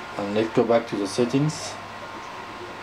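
A man talks through a television speaker.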